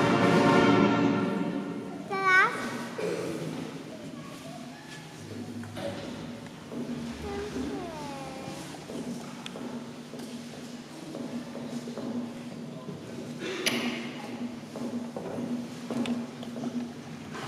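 A crowd of people murmurs and shuffles in a large echoing hall.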